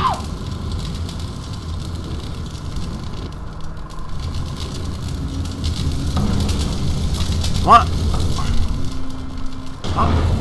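Fire roars and crackles steadily.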